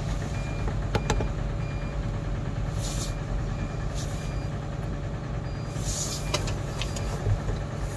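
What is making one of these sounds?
Metal parts clank and knock now and then.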